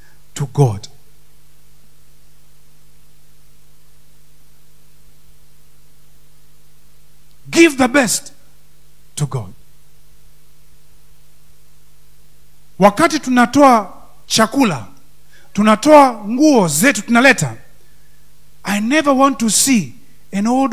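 A man speaks with animation into a microphone, heard through loudspeakers, with long pauses.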